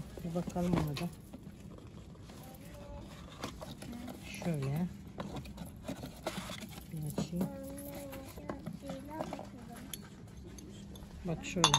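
Cardboard rustles as a box is opened.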